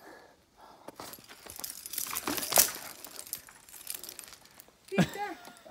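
Climbing gear rattles as a climber falls on a rope.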